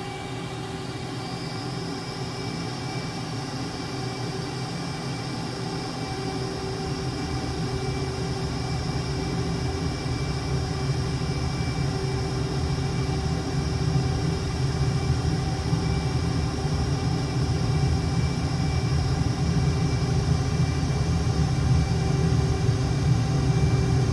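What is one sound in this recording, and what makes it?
A jet engine roars steadily and grows louder as the aircraft speeds down the runway.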